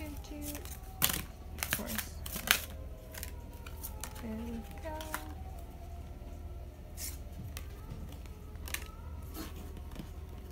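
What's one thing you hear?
Playing cards slide and tap softly onto a table.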